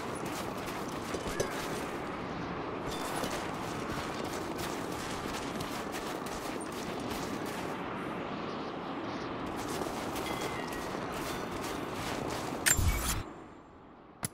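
Blizzard wind blows.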